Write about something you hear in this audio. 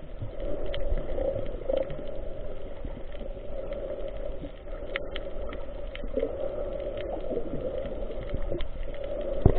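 Water rumbles and murmurs steadily underwater.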